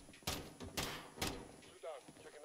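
Muffled rifle shots crack three times in quick succession.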